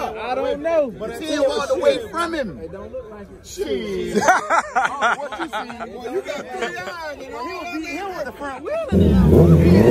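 Several men chat loudly nearby.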